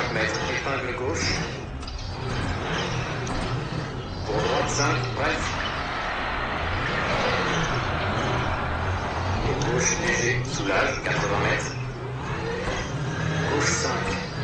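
A rally car engine revs and shifts gears in a racing game.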